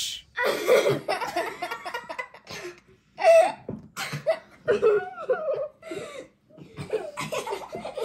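A boy talks excitedly.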